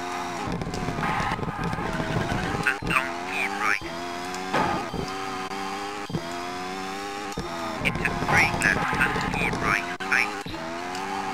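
Tyres skid and squeal on gravel.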